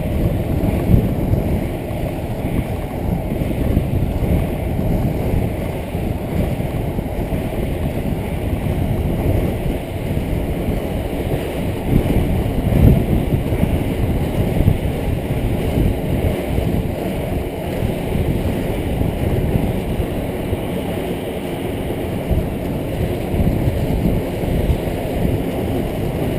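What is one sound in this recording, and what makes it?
Inline skate wheels roll at speed on asphalt.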